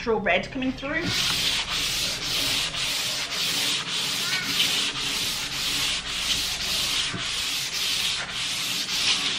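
Hands rub back and forth across a wooden surface in a steady rhythm.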